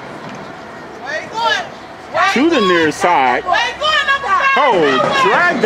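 Spectators cheer and shout.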